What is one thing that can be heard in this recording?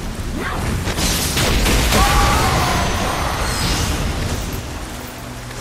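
A sword clashes against an enemy with a loud magical burst.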